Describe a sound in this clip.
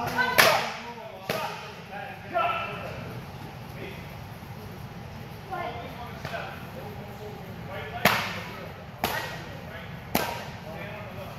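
Sharp slaps of strikes on a kick pad ring out in a large echoing hall.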